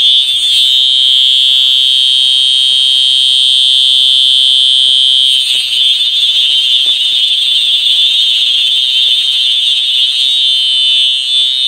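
A fire alarm blares loudly and steadily.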